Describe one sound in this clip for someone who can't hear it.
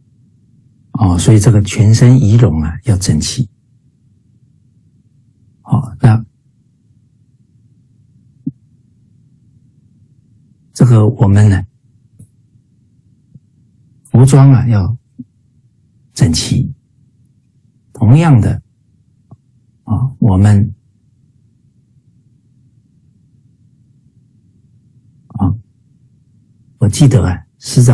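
A middle-aged man speaks calmly in short phrases with pauses, heard through an online call.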